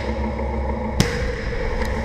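A tank cannon fires with a sharp, loud blast.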